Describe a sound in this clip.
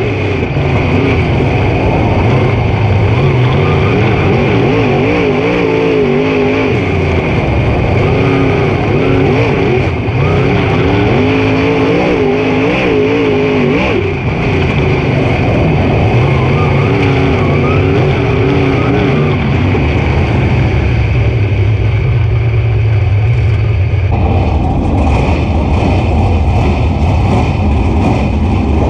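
A race car engine roars loudly up close, rising and falling as it revs through the turns.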